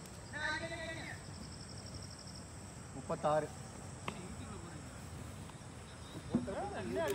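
Men shout and call out nearby outdoors.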